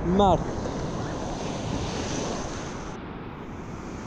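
Waves wash onto a shore.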